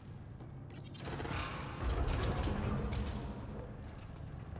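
A heavy sliding door opens with a loud rumbling whoosh.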